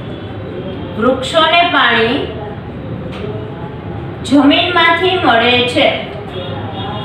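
A young woman speaks calmly through a microphone.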